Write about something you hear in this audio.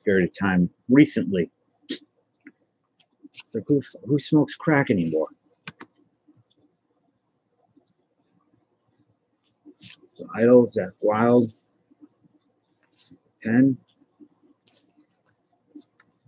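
Stiff cards rustle and slide against each other as they are handled.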